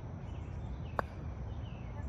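A croquet mallet strikes a ball with a sharp wooden knock.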